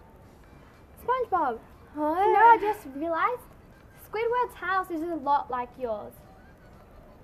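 Two young girls talk with animation, close by.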